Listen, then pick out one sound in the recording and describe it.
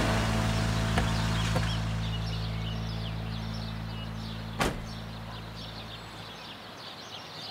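A car engine idles with a low hum, then stops.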